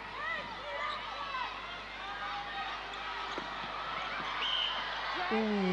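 A large indoor crowd murmurs and cheers.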